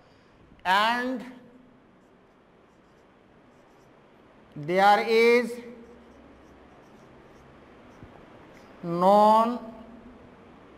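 A man speaks nearby in short, drawn-out phrases with long pauses.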